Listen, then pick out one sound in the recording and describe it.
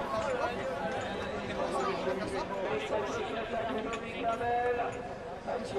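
A crowd of spectators talks and shouts excitedly close by.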